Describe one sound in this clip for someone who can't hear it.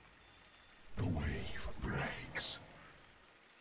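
A magical whooshing game effect plays.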